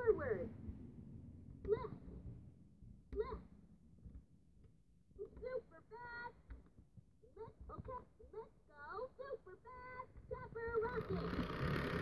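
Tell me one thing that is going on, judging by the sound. An electronic toy airplane plays short tinny tones and jingles as its buttons are pressed.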